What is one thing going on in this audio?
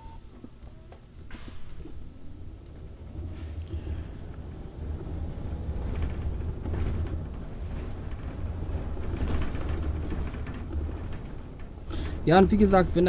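Bus tyres rumble over cobblestones.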